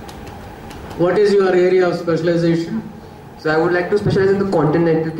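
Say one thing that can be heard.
A young man speaks calmly into a microphone over loudspeakers.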